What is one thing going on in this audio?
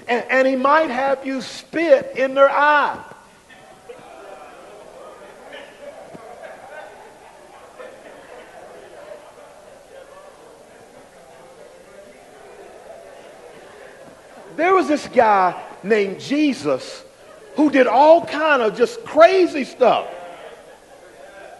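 A man speaks with animation into a microphone, pausing for long stretches.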